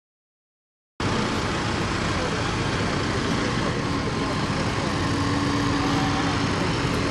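Tractor engines rumble loudly as tractors roll slowly past close by.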